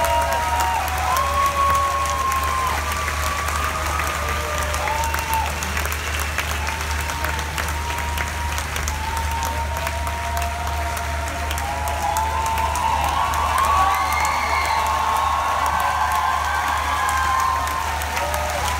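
Electric guitars play loudly in a large echoing space.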